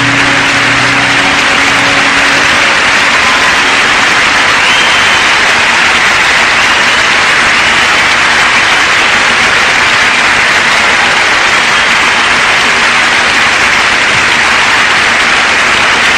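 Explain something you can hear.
A large crowd applauds and cheers loudly in a big echoing hall.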